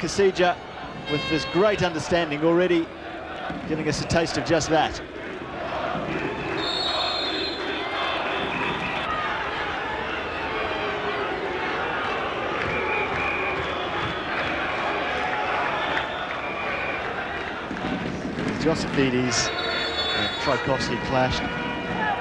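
A crowd in a stadium murmurs and cheers outdoors.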